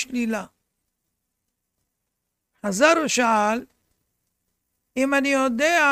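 An elderly man chants in a melodic voice, close to a microphone, with pauses between phrases.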